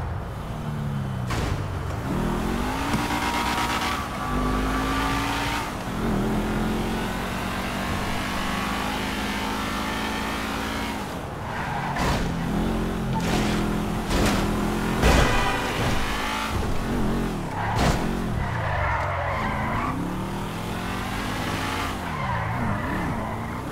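A car engine revs up and down as it speeds along.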